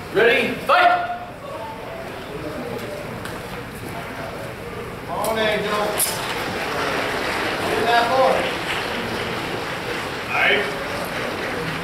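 A man shouts commands in a large echoing hall.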